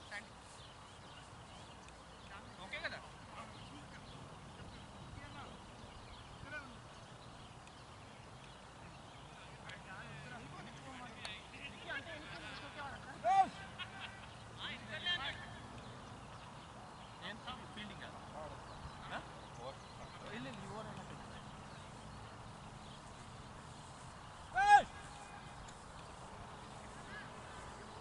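Men talk and call out to each other outdoors at a distance.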